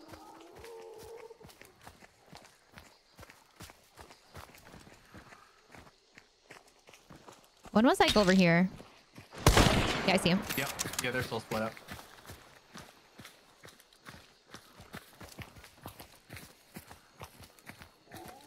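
Footsteps crunch steadily over leaves and dirt.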